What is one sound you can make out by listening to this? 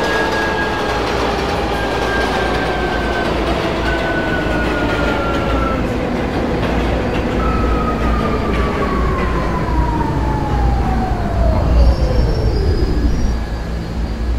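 A subway train's electric motors whine, falling in pitch as the train slows to a stop.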